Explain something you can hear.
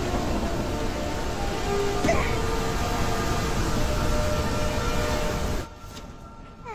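A waterfall roars loudly.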